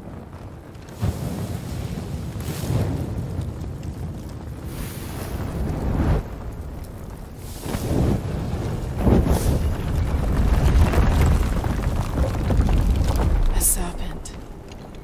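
Flames rush and roar loudly.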